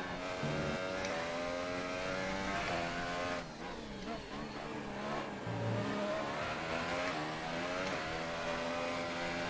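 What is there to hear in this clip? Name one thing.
A racing car engine roars and revs up and down as gears shift.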